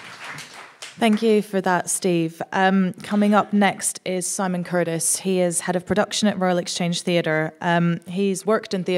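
A woman speaks calmly into a microphone over loudspeakers.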